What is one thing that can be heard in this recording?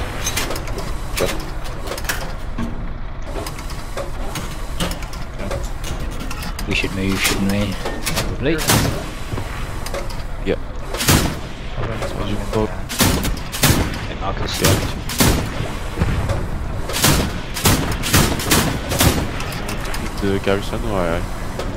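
A heavy cannon fires in loud, repeated bangs.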